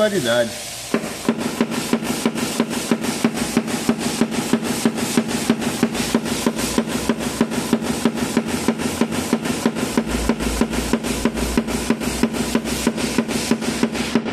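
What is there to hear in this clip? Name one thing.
A small tool taps rapidly and steadily on a metal panel.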